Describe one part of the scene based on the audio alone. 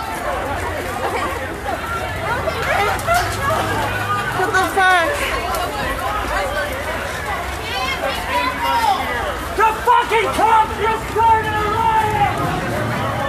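A crowd of people shout and talk loudly outdoors.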